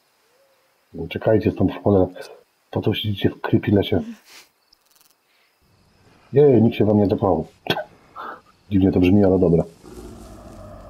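A young woman speaks softly, close by.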